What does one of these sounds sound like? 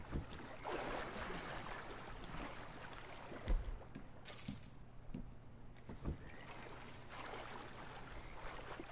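Water splashes as a man wades through it.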